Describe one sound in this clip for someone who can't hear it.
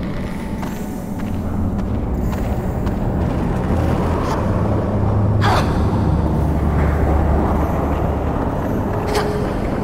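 Footsteps thud on rocky ground.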